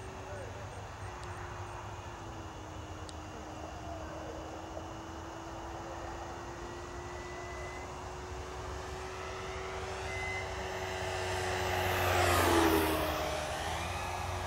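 A small propeller plane engine drones steadily overhead.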